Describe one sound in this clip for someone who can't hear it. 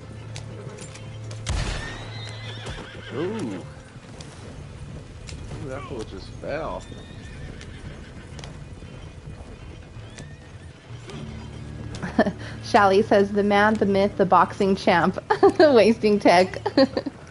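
Horse hooves clop steadily on the ground.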